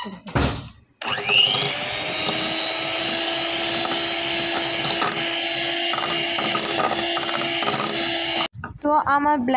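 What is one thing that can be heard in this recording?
An electric hand mixer whirs steadily, beating batter in a bowl.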